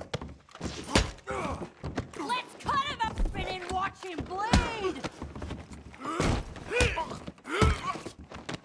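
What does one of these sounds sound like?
Heavy punches thud in a brawl.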